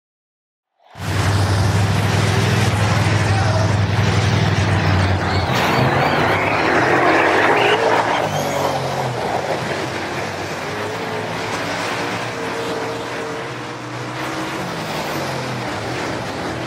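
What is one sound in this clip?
A race car engine roars steadily.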